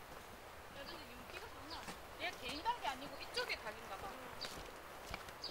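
Women talk softly nearby, outdoors.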